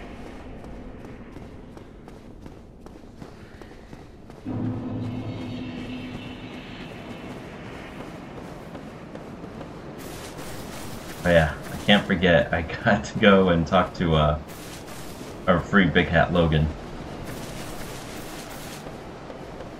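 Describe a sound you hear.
Footsteps patter quickly on stone and grass.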